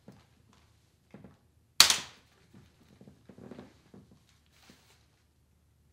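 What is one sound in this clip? A stroller frame rattles as it is folded.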